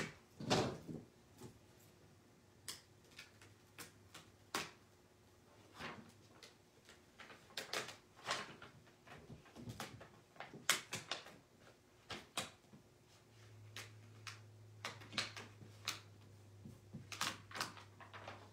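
Fingers rub and press on a plastic sheet, with soft crinkling.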